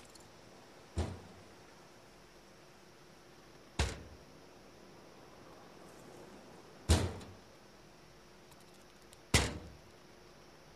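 Rifle shots crack loudly, one after another with pauses between.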